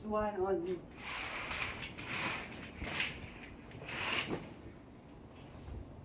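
Curtain fabric swishes as it is pulled along a rail.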